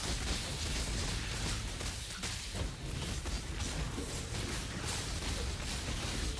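Spell effects crackle and burst in rapid succession.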